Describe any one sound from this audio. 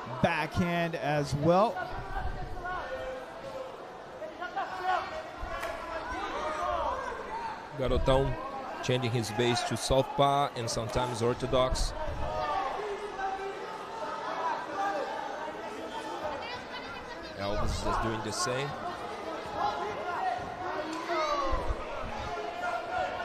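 A crowd shouts and cheers in a large echoing hall.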